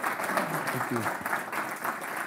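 A man speaks to an audience through a microphone.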